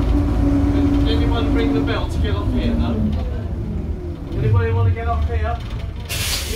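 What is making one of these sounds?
An elderly man speaks loudly to passengers.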